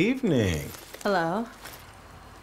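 A young woman speaks briefly, close by.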